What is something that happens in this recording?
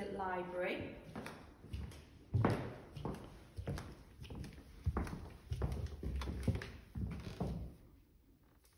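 High heels click on a wooden floor.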